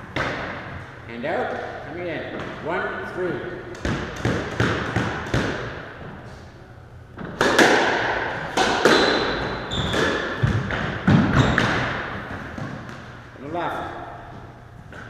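Sneakers squeak and thud on a wooden floor.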